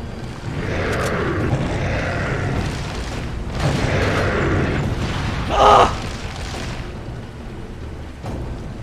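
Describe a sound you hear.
Gunshots ring out.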